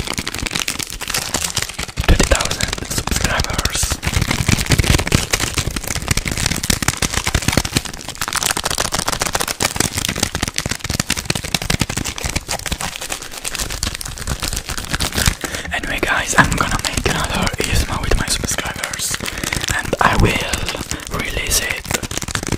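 A young man whispers softly and closely into a microphone.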